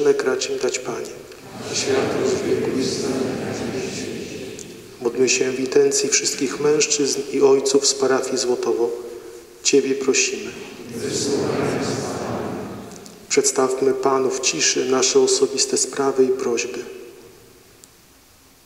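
A man reads aloud calmly into a microphone in a large echoing hall.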